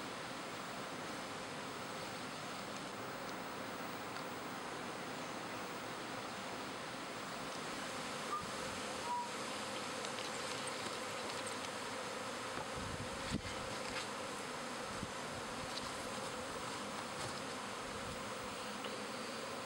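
A swarm of honey bees buzzes all around.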